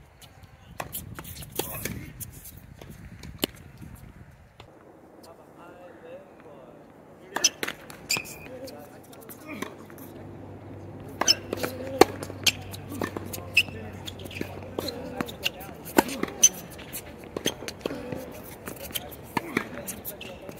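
Sneakers squeak and scuff on a hard court.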